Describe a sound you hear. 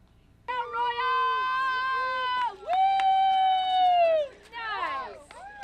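A woman cheers loudly nearby with long, high whoops.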